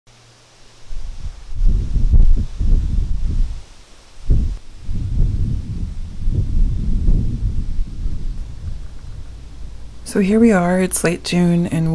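Wind blows in gusts across the microphone outdoors.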